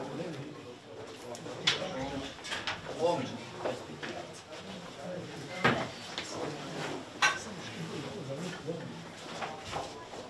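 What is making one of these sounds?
Short knocks and rustles sound as bags and clothes are handled.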